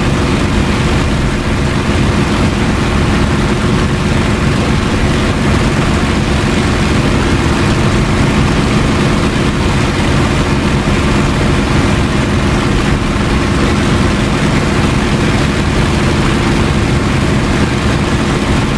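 Wind rushes past an aircraft cockpit.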